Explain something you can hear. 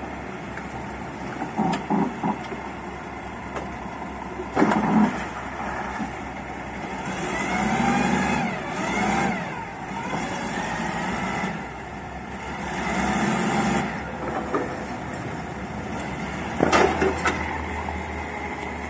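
A diesel forklift engine runs and revs.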